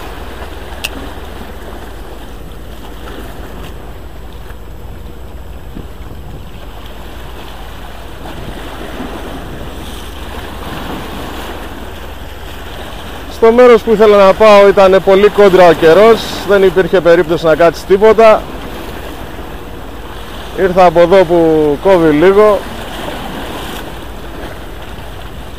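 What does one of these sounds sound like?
Small waves splash against rocks.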